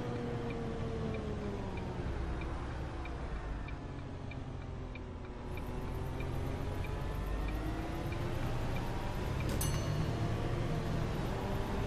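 Tyres rumble low on the road.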